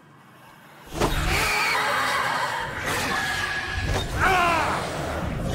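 A ghostly whoosh swells and swirls.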